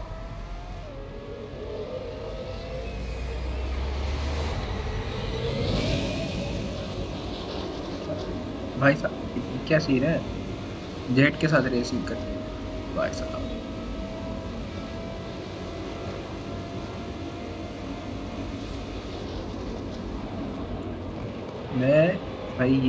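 A race car engine roars at high speed, its pitch slowly rising as it accelerates.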